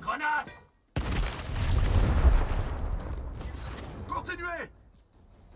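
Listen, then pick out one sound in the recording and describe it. A grenade explodes with a loud, rumbling blast.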